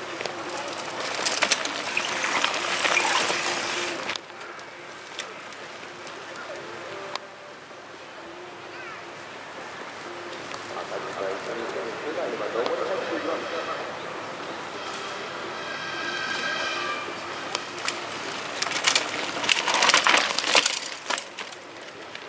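A mountain bike rattles and crunches past close by on a dirt trail.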